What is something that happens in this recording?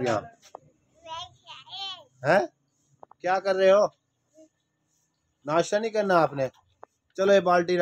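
A small child babbles and speaks in short bursts close by.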